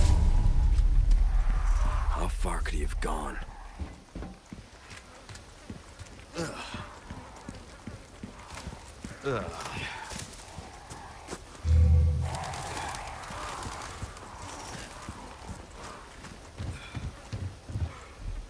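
Footsteps crunch quickly over wet ground outdoors.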